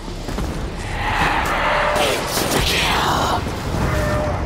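A monster snarls and roars.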